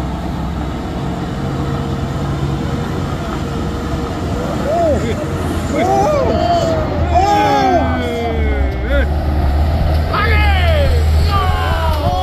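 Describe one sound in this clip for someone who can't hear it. Truck tyres crunch over a rough dirt road.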